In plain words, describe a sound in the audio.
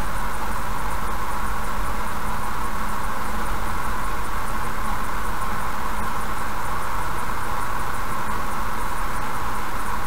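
Tyres roll steadily on an asphalt road as a car drives along.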